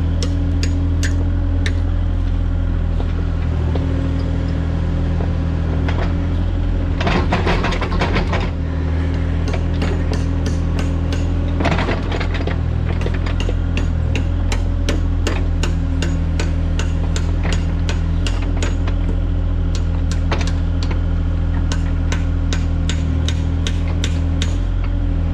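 A diesel engine of an excavator rumbles steadily close by.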